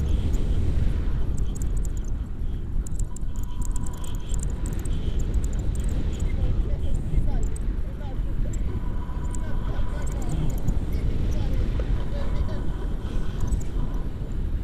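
Wind rushes and buffets loudly past a microphone high in the open air.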